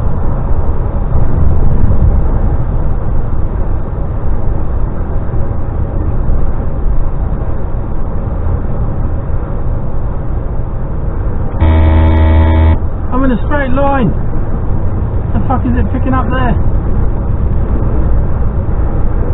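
Road noise rumbles steadily from inside a vehicle driving on a motorway.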